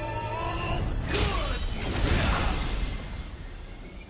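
A blast of energy roars and whooshes.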